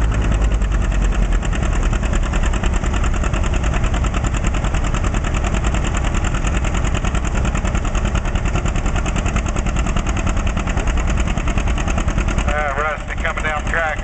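A loud tractor engine roars and rumbles steadily close by.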